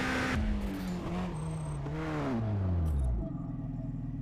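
A car engine winds down from high revs.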